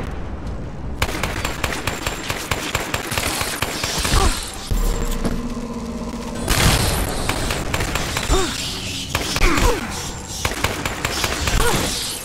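Blasts and hits crack and thud in a fight.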